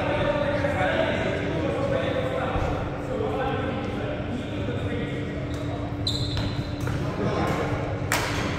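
Voices of men and women chatter in a large hall.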